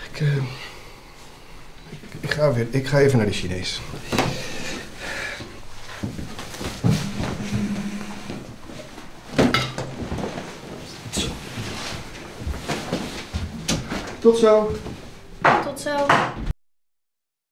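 A middle-aged man speaks, close by.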